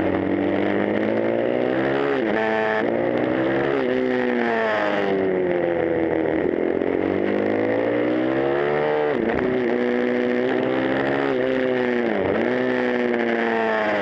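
A motorcycle engine roars loudly close by, revving up and down through the gears.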